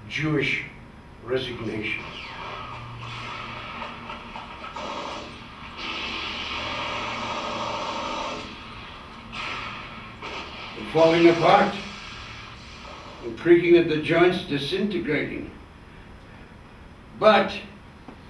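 An elderly man speaks slowly and calmly.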